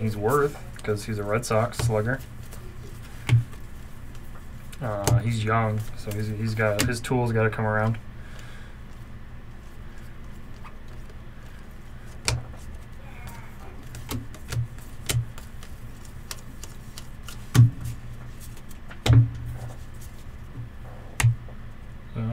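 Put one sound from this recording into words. Trading cards tap and shuffle against each other.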